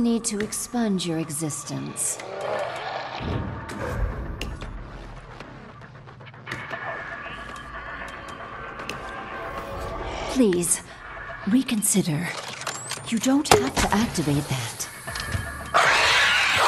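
A zombie creature growls and groans.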